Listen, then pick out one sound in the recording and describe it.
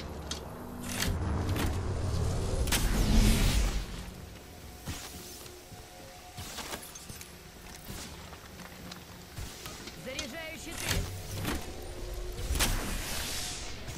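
A sci-fi charging effect crackles and hums in a video game.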